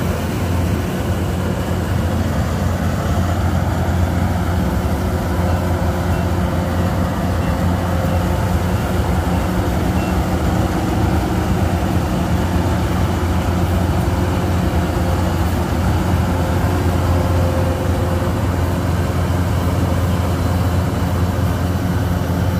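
A combine harvester engine drones steadily close by.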